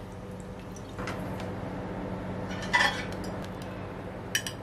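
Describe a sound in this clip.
Water bubbles and boils in a pan.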